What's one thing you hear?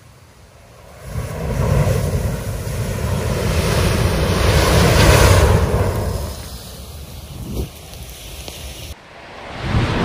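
A huge burst of fire roars loudly.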